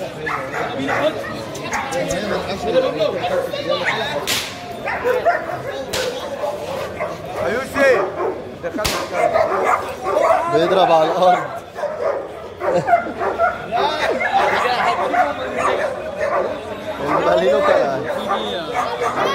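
A crowd of men chatters loudly close by outdoors.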